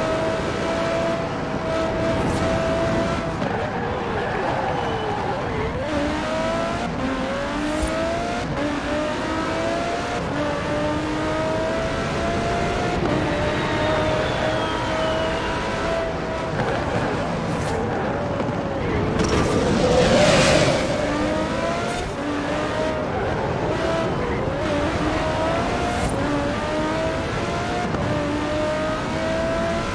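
A racing car engine roars, rising and falling in pitch as the car speeds up and shifts gears.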